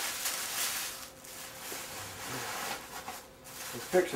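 Tissue paper rustles and crinkles close by.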